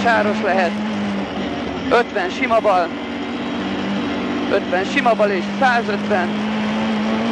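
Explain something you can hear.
A man calls out quickly and loudly from close by.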